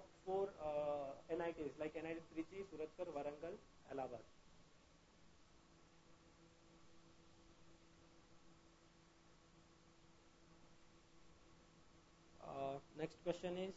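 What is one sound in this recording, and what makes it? A man speaks calmly and clearly into a nearby microphone.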